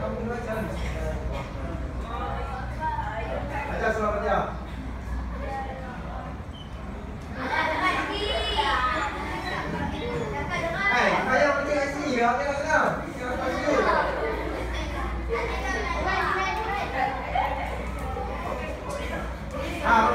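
Children chatter in the background.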